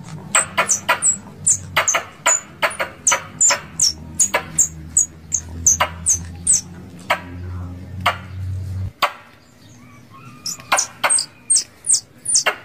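Caged birds give sharp, high chirps again and again, close by.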